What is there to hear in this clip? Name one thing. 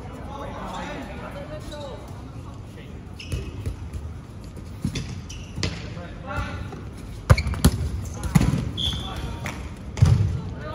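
Young men and women call out and chatter in the distance.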